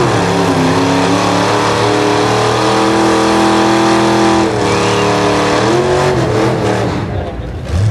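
Tyres squeal as they spin on the asphalt.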